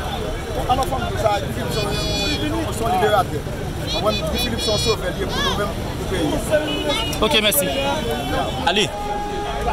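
A man speaks up close with animation.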